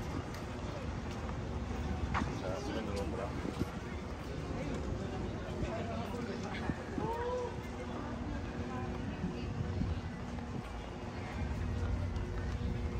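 Footsteps tap on a stone promenade outdoors.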